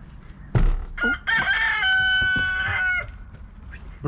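A rooster crows loudly.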